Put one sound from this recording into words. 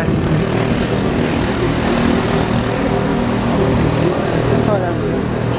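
A man talks calmly and close to a microphone, outdoors.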